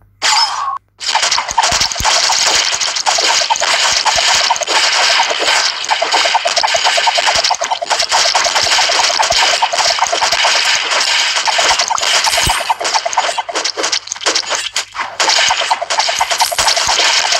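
Game gunfire and explosions rattle loudly and without a break.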